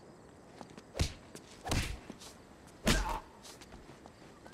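Heavy punches land with loud thuds.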